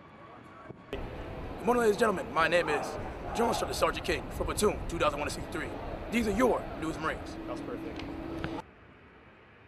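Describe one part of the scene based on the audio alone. A young man speaks loudly and firmly, close by.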